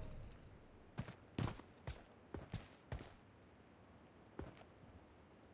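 Footsteps tread on dirt.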